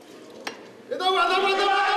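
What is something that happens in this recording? A man shouts loudly with strain.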